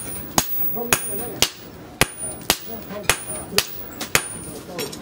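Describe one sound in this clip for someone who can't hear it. Hammers strike hot metal on an anvil in a quick, steady rhythm, ringing sharply with each blow.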